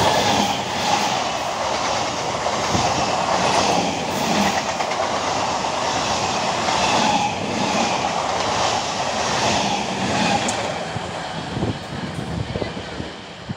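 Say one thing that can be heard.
A passing train rattles and roars loudly close by.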